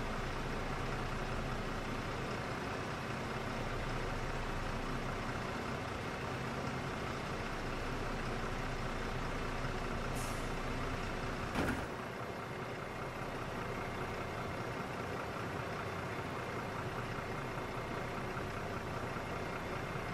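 A diesel city bus engine idles.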